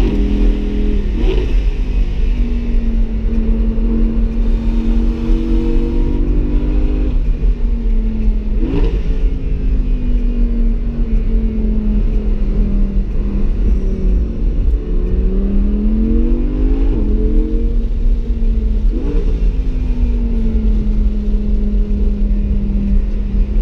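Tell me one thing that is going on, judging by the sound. Wind rushes steadily past the car.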